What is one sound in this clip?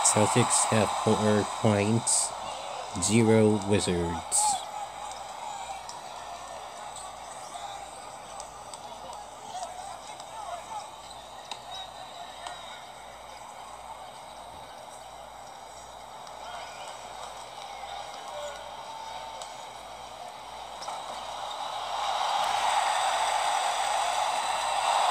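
A crowd murmurs in a large arena and swells into loud cheering.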